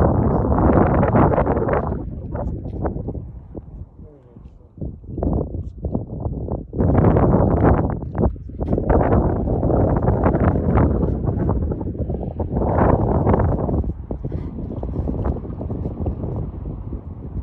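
Wind gusts strongly outdoors, buffeting and rumbling.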